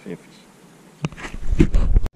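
A small fish splashes as it drops into the water.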